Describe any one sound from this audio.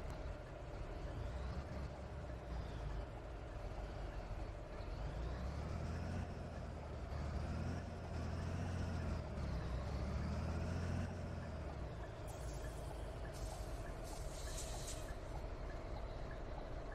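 A bus engine hums, rising and falling in pitch as it pulls away.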